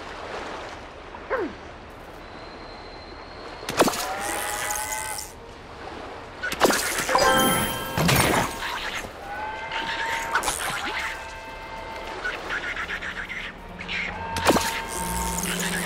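A fishing lure splashes into water.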